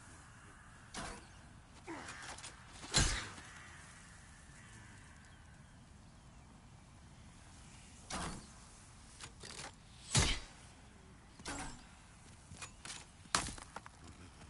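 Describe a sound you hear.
Heavy thumps sound now and then.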